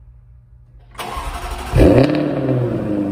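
A car engine cranks and starts with a loud rev.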